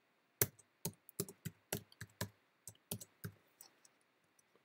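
Keys click on a computer keyboard in quick bursts.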